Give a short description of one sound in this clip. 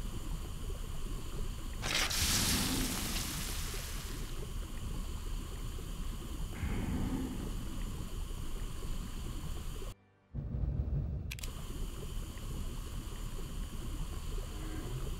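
A fire crackles softly in a furnace.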